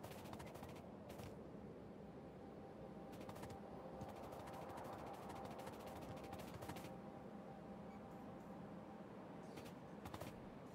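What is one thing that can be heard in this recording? Quick footsteps patter on sand in short bursts.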